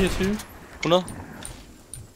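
A young man speaks through a headset microphone.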